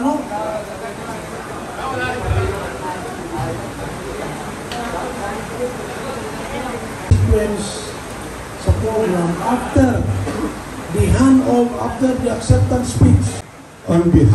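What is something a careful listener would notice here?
A crowd of men and women chatter in the background.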